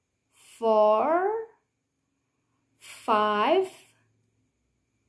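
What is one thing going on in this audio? A young woman speaks clearly and expressively into a close microphone, drawing out words in a sing-song way.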